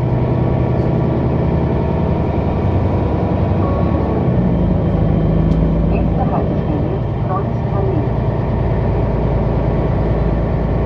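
A vehicle's engine hums steadily from inside as it drives along a road.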